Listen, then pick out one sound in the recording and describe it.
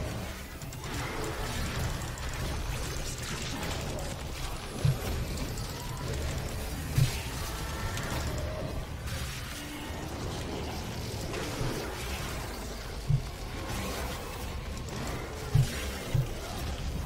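Heavy guns boom and blast in short bursts.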